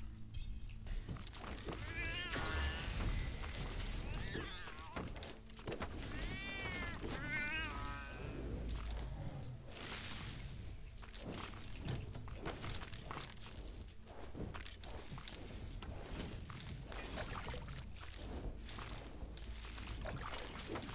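Magic blasts and hits crackle and thud in quick succession.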